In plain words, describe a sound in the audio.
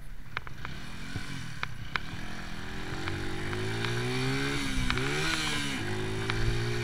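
A motorcycle engine revs up and down as it accelerates through the gears.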